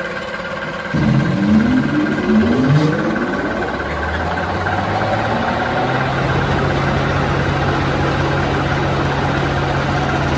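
A machine motor starts up and its whir rises in pitch, then settles into a steady drone.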